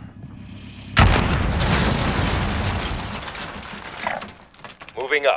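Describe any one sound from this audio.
An explosion booms loudly and rumbles away.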